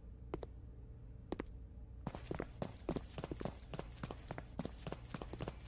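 Footsteps thud on a hard floor at a steady walking pace, echoing slightly.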